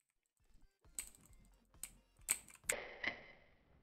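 Small guns fire in short, sharp pops.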